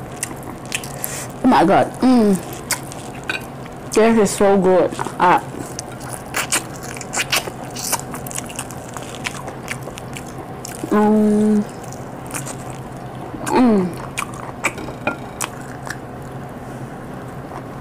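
A young woman chews and smacks her food loudly, close to a microphone.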